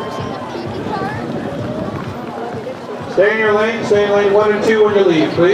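A crowd of spectators chatters and cheers outdoors.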